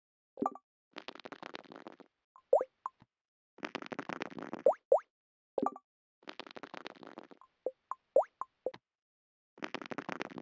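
Dice rattle quickly as they roll.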